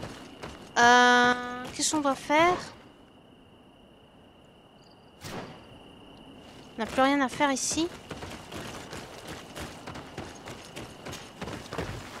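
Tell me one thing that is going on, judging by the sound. Footsteps thud quickly on dirt as a person runs.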